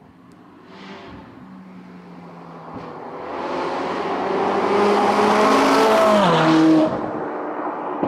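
A second sports car accelerates up a road and passes close by.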